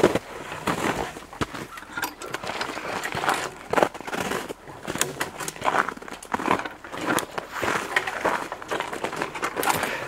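Twigs and branches snap and scrape against clothing.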